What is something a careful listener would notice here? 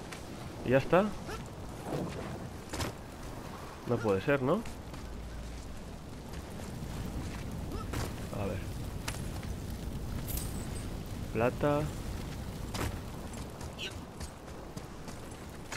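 Heavy footsteps crunch on rough stone.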